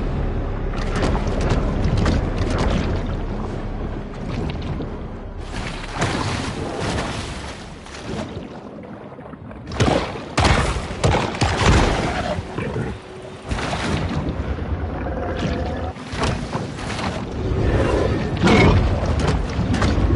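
Water swirls and rushes underwater as a shark swims.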